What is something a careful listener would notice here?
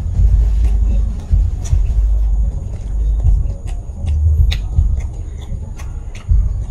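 A man chews food loudly and wetly close to a microphone.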